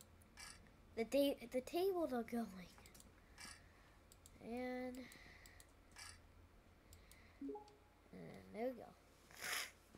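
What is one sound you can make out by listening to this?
A young boy speaks with animation, close to a microphone.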